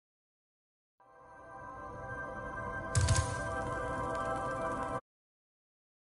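A bright chiming tune plays briefly.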